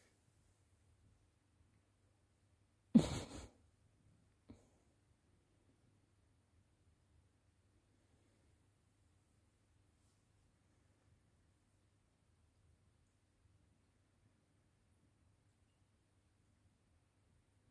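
Kittens shuffle softly on a knitted blanket.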